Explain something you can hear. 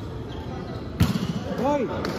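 A volleyball is hit with a sharp smack in a large echoing hall.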